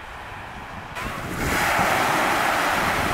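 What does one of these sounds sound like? Small waves wash over pebbles on a shore.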